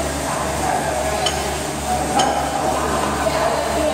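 A loaded barbell clanks as it is lowered.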